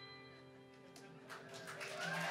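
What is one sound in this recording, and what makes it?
A keyboard holds a final chord that fades away.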